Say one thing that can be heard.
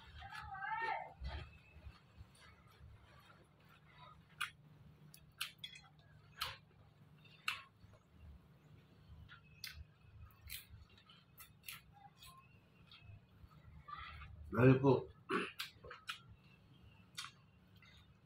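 Cutlery and hands clink on a plate.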